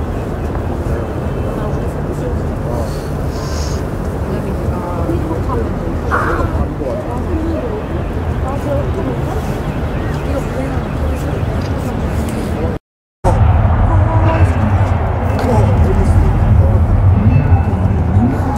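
Music from an outdoor stage carries from afar across the open air.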